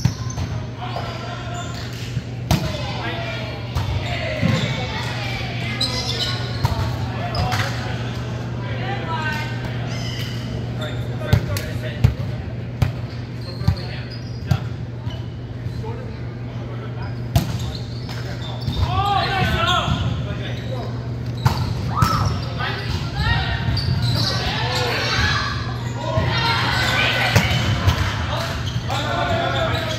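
Several young men call out and talk loudly across the court.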